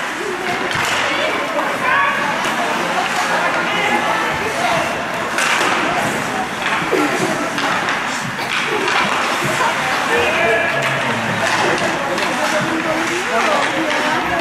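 Ice hockey skates scrape and carve on ice in an echoing rink.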